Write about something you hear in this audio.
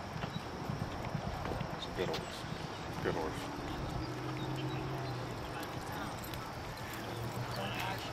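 Horses' hooves thud softly on a dirt track.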